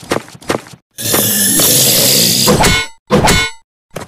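Fiery blasts roar loudly.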